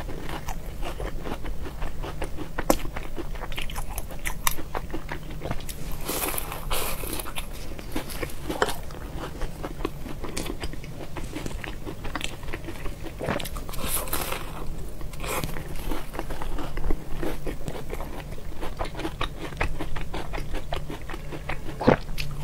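A young woman chews food wetly and loudly, close to a microphone.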